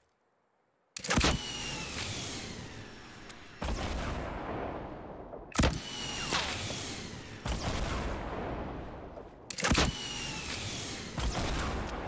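Explosions roar and rumble after each blast.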